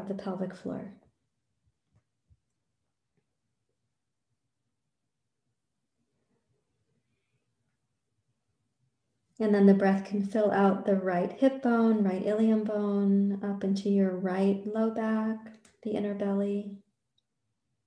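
A woman speaks calmly and slowly close to a microphone.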